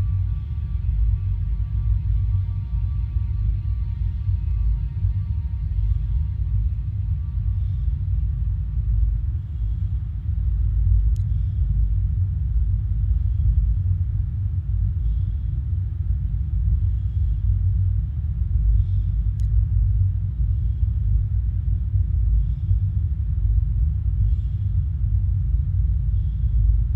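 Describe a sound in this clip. A spacecraft engine rumbles deeply and steadily.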